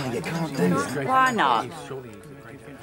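An elderly woman speaks quietly.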